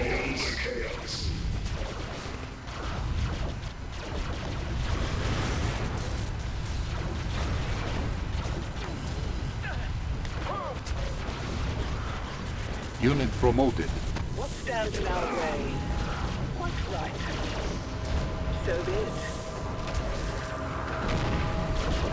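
Game explosions and weapon fire boom and crackle constantly.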